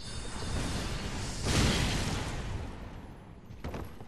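An armoured figure lands with a heavy thud after a drop.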